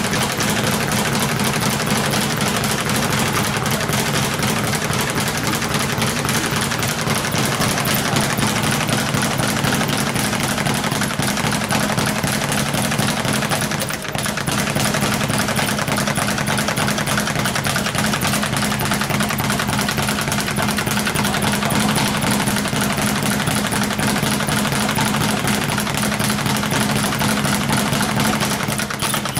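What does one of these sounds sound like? A speed bag rattles in a fast, steady rhythm under rapid punches.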